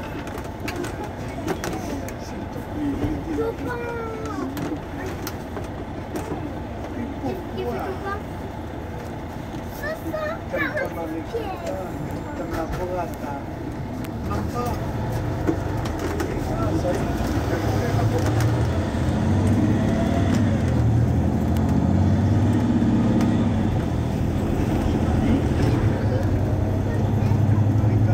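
A bus engine idles nearby with a low, steady rumble that grows louder.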